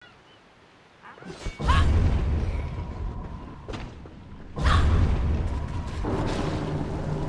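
Magic spells whoosh and burst with deep rumbling booms.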